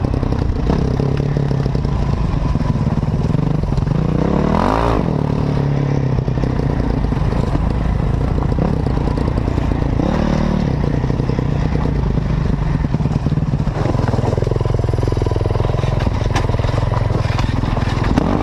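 Tyres crunch and rattle over loose stones.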